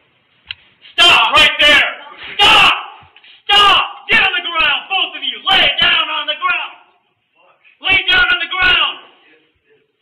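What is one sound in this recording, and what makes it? A man shouts commands loudly and urgently, close by.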